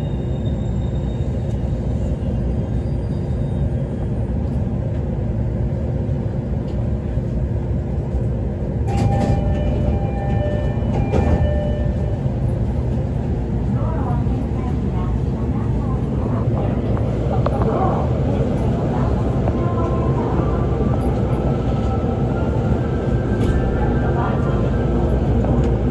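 A train's motors hum steadily inside the carriage.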